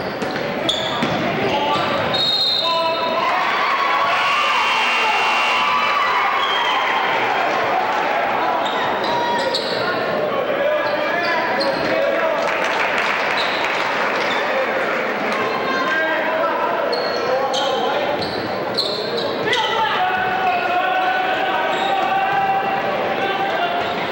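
A crowd in an echoing gym cheers and calls out throughout.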